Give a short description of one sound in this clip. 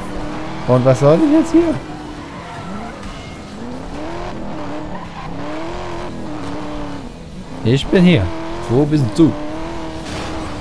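A sports car engine roars and revs as the car speeds along.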